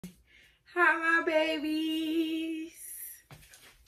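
A young woman sings a drawn-out note.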